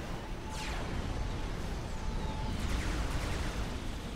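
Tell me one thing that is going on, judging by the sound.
Explosions rumble in a battle.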